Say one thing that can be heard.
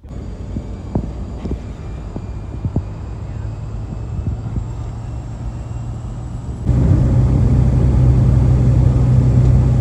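The piston engine of a single-engine light aircraft drones from inside the cabin while taxiing.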